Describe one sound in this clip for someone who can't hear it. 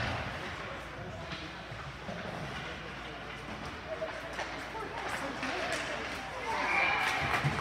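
Spectators chatter in a large echoing rink.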